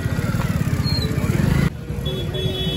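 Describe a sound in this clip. Motorbike engines rumble nearby.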